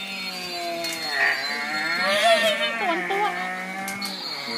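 A baby laughs and squeals close by.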